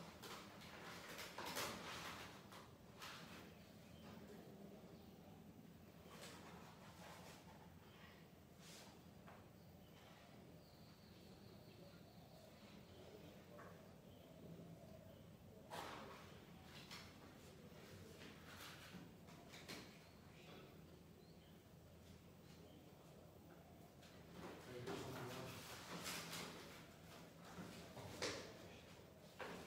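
A ceiling fan whirs steadily overhead.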